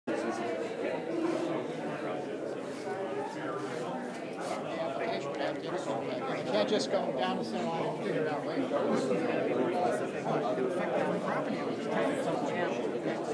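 A crowd of adults chatters nearby.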